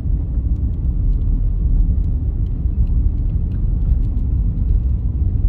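Tyres rumble over a gravel road, heard from inside a car.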